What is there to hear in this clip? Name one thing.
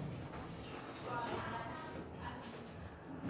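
A young woman talks softly.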